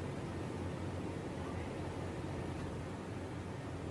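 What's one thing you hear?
Fabric rustles as a shirt is lifted and folded.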